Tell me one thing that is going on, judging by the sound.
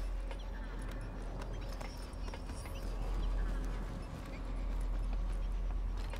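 Boots clank on a metal ladder rung by rung.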